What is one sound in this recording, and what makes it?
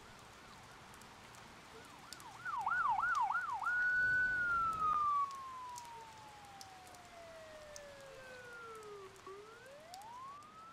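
A siren wails up and down quickly, then slides slowly lower and rises again.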